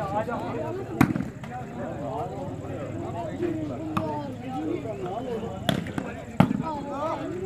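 A ball is struck by hand with a sharp thud.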